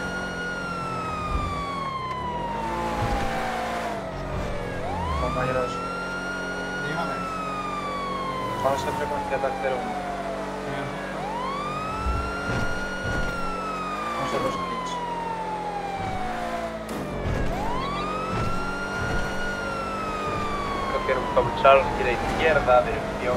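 A police siren wails, rising and falling slowly.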